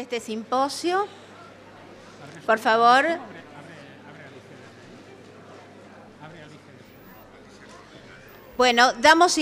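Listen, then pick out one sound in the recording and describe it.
A man speaks into a microphone over loudspeakers in a large hall, in short bursts.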